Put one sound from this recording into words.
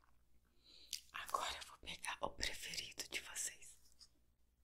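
A young woman whispers close to the microphone.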